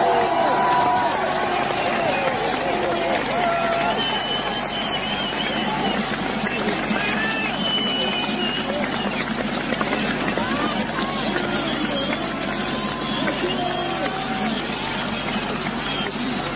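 A large crowd screams and cheers loudly in an open stadium.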